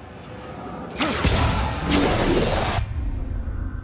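A rushing gust of wind swells loudly and then cuts off.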